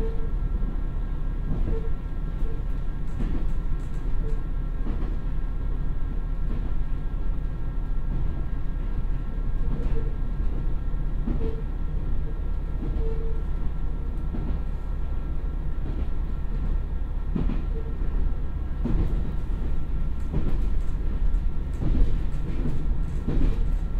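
A diesel railcar engine rumbles steadily close by.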